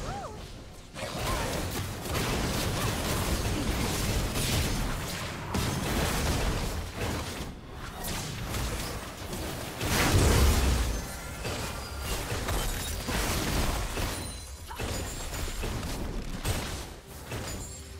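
Magical spells whoosh and crackle during a fast fight.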